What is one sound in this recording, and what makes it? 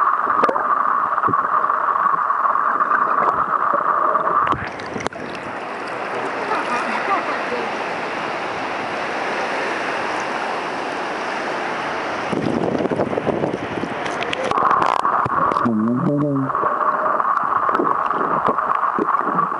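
Water rushes and bubbles, muffled underwater.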